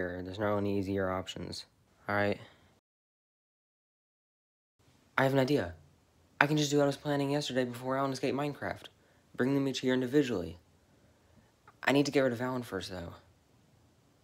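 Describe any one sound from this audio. A teenage boy talks close to the microphone with animation.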